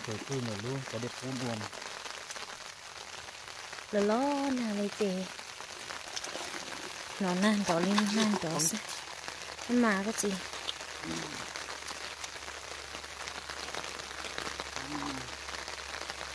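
A man talks in short bursts close by.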